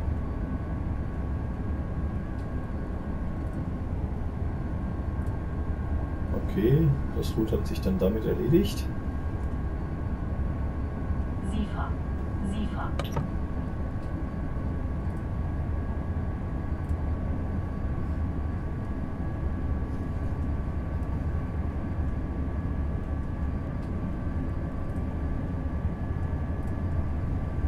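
Train wheels clatter over the rails.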